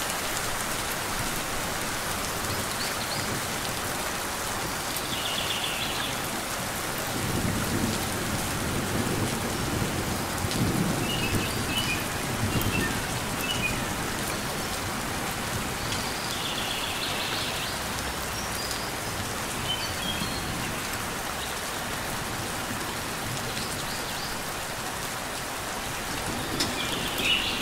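Light rain patters steadily on leaves outdoors.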